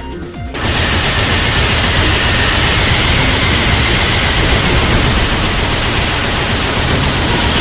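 Loud game attack effects crash and blast continuously.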